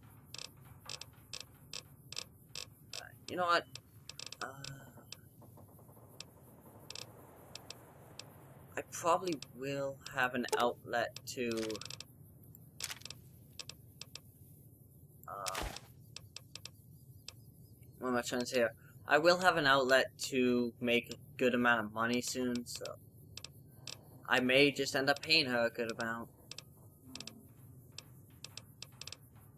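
Short menu clicks tick rapidly as a selection moves through a list.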